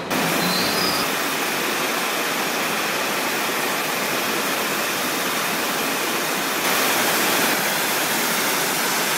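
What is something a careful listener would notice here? An ultra-high-pressure water jet hisses as it blasts concrete.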